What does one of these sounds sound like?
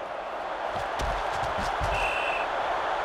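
Football players thud together in a tackle.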